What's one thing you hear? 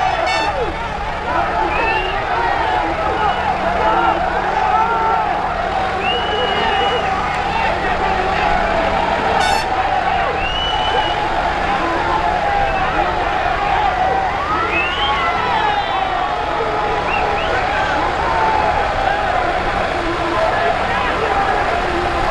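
A large crowd of men shouts and cheers outdoors.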